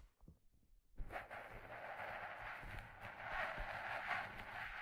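Hands rub and brush a hat close to a microphone with a steady rustle.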